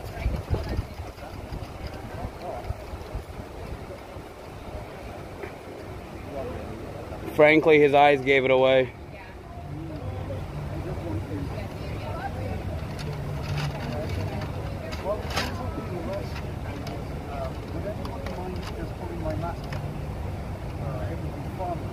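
Men talk outdoors.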